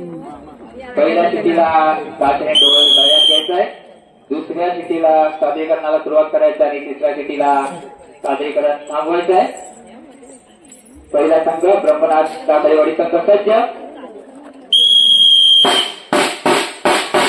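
A man plays a loud wind horn in short wailing phrases.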